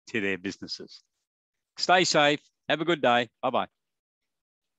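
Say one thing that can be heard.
An elderly man speaks cheerfully through an online call.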